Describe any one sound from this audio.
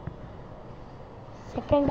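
A young boy speaks briefly, close by.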